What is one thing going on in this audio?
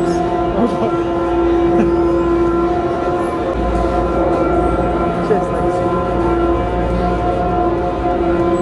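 Cable car machinery hums and whines steadily.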